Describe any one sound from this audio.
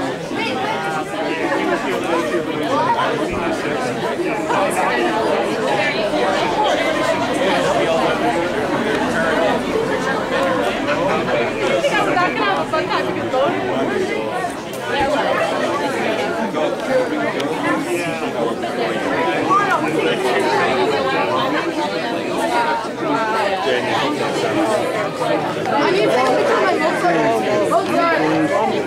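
A large crowd of young people and adults chatters and laughs close by outdoors.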